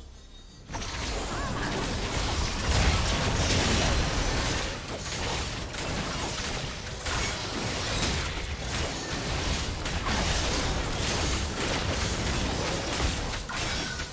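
Spell blasts and clashing strikes crackle in rapid succession during a fantasy battle.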